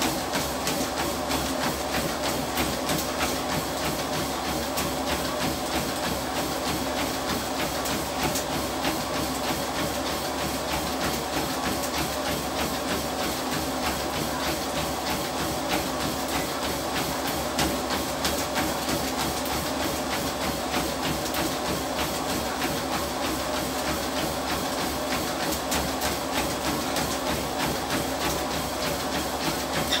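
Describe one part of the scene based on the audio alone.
A treadmill belt and motor hum steadily.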